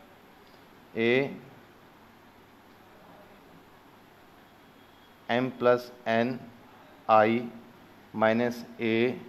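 A man speaks in short bursts, explaining through a microphone.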